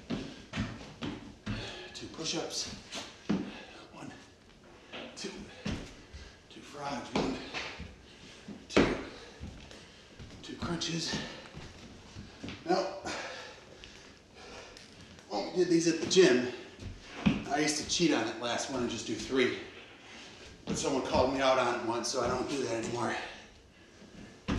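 A man talks steadily and nearby.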